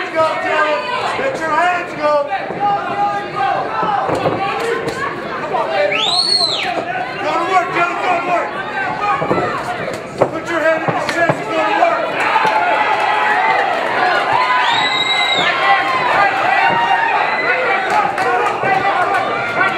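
Boxing gloves thud against bodies in quick punches.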